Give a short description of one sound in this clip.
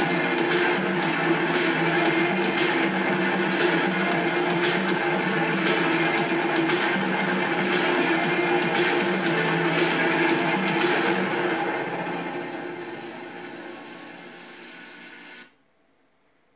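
Drums and music play with a steady beat, then fade away.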